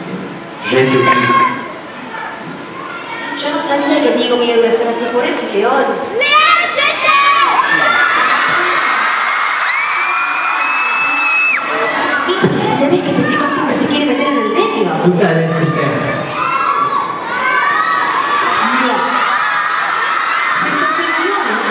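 A young man sings over a loudspeaker in a large echoing hall.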